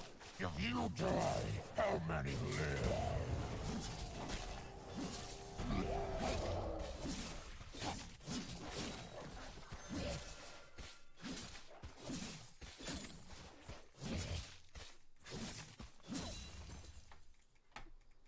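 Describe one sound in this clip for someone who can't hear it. Game sound effects of combat clash and burst.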